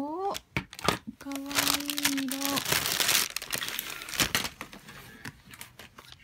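Small plastic pieces clatter and tap on a wooden table.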